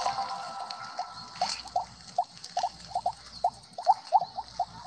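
Short electronic game blips pop in quick succession.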